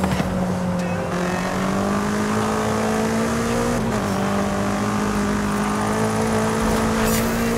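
A car engine roars steadily, its pitch climbing as it speeds up, with a brief dip at a gear change.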